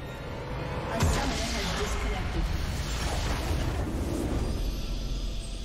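A magical blast booms and crackles loudly.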